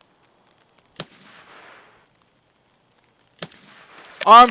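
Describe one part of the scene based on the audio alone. A rifle fires a sharp shot that trails off, twice.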